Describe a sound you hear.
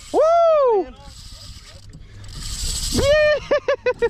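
A fishing reel's drag buzzes as line pulls out.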